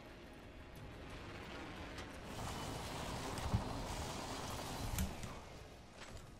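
A rushing wind roars loudly, then fades.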